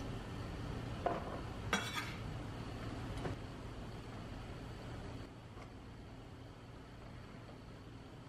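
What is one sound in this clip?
Vegetable pieces clatter softly into a ceramic dish.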